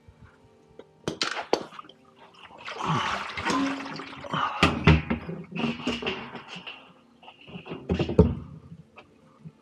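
A plastic washer tub knocks and rattles as hands shift it.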